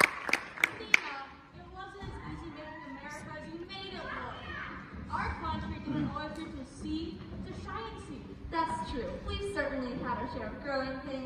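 Young girls chatter and call out to each other across an echoing hall.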